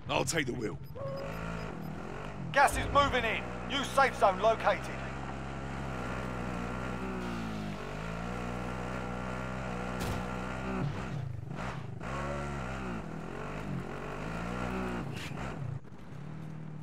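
A quad bike engine drones and revs as it drives.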